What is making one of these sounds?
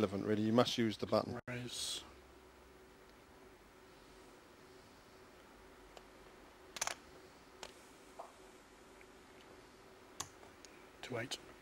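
Poker chips click together.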